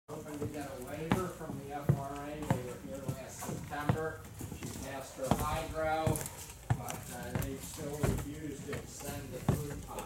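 Footsteps thud on wooden boards close by.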